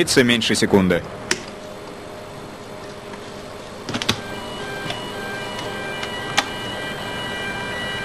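Switches click on a control panel.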